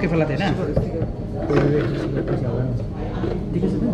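Glass bottles clink and scrape on a hard counter.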